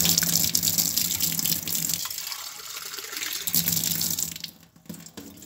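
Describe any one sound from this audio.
Water bubbles and hisses at a rolling boil in a pot.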